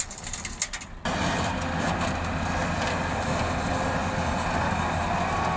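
An excavator engine drones loudly and steadily.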